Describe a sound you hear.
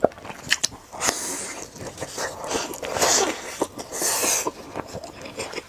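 Crispy crumbs crunch as a young woman bites into a fried rice ball.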